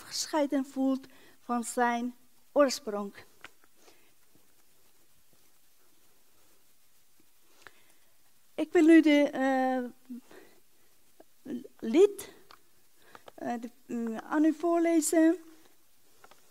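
A woman speaks through a microphone in a large hall, reading out in pauses.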